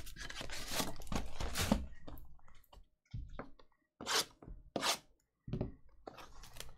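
Cardboard boxes tap and slide against each other.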